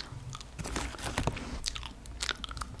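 A plastic snack bag crinkles close up.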